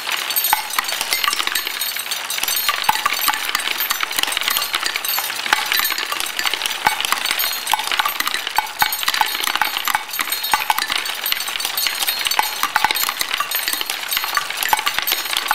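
Glass marbles roll and clatter steadily through a wooden marble run.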